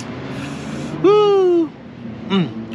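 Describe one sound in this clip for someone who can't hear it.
A man hums a long, appreciative sound close by.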